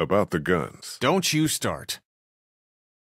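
A man speaks gruffly up close.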